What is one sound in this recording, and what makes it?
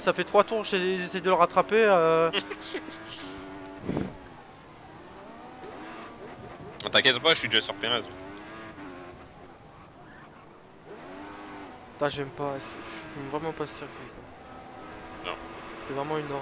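A racing car engine whines and revs up and down through gear changes.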